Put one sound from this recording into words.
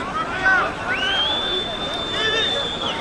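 A referee blows a long whistle.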